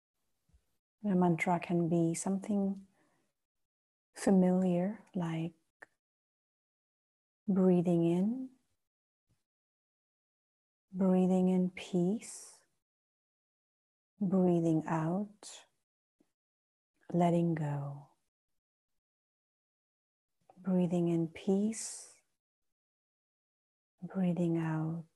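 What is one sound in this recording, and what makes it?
A woman speaks slowly and calmly in short phrases with long pauses, close by.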